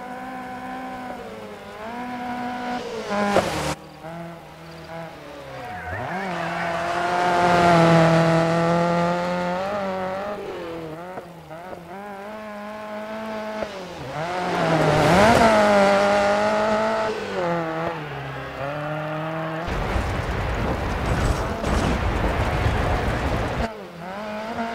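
A rally car engine roars and revs up and down as the car speeds past.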